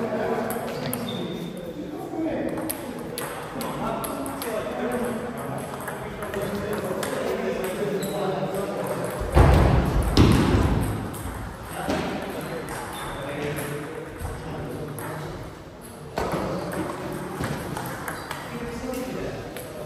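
Table tennis balls click sharply against paddles and the table.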